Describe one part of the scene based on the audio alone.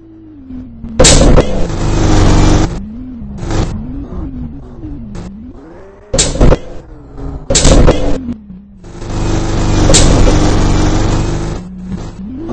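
A bus crashes and scrapes loudly along a road.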